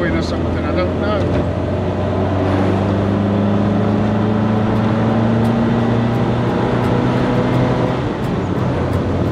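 Wind rushes past in an open car.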